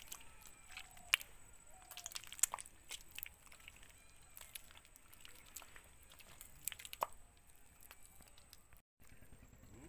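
Footsteps squelch and slap through wet mud.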